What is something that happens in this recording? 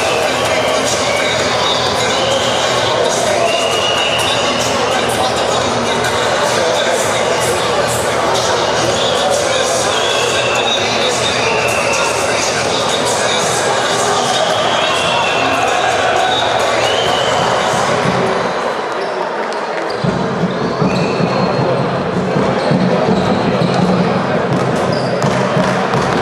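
A crowd cheers and chatters throughout a large echoing arena.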